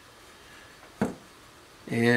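A plastic mould is set down on a table with a light tap.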